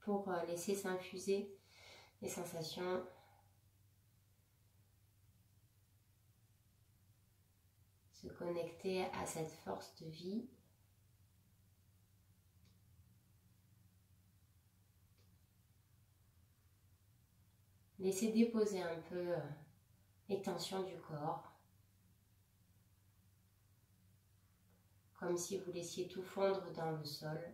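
A woman speaks calmly and softly nearby, with long pauses.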